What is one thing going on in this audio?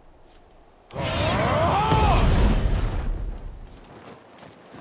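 Magic blasts crackle and boom.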